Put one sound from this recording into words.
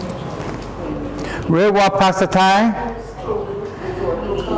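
An elderly man speaks loudly and clearly nearby.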